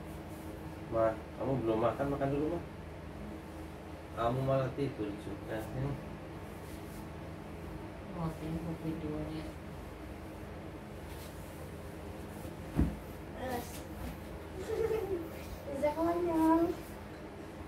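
A man speaks in short, quiet phrases close by.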